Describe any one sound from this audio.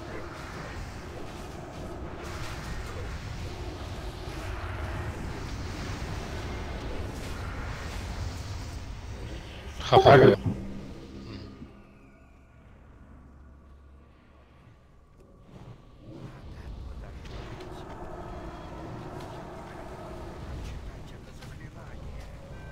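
Magic blasts and weapon strikes clash in a busy fight.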